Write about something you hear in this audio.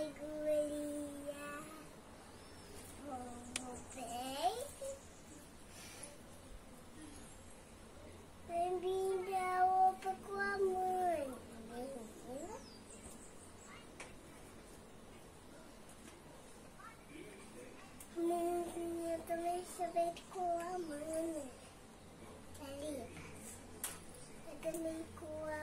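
A young girl speaks close by in a high, lively voice.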